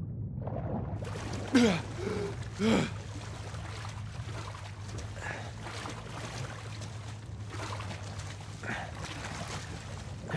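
A swimmer splashes through water at the surface.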